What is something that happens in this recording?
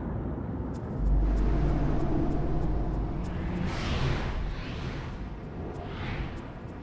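Stormy waves wash against a stone wall.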